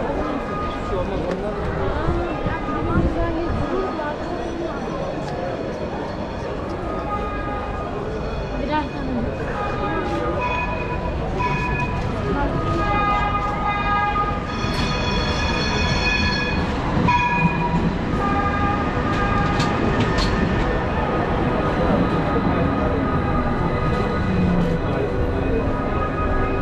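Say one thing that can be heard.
A crowd of men and women chatters all around on a busy street.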